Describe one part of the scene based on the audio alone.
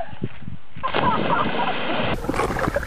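A body splashes heavily into water.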